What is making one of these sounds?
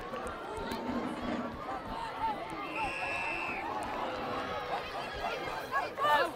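A crowd of children and adults shouts and cheers outdoors.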